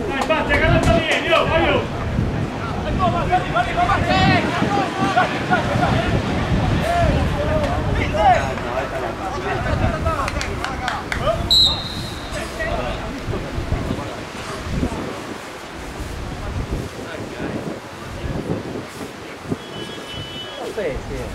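Men in a nearby crowd chat and call out loudly.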